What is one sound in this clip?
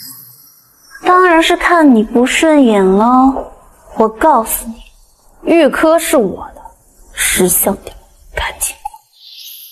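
A young woman speaks sharply and coldly, close by.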